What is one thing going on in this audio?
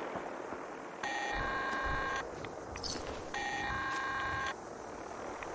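Short electronic tones chime in quick runs.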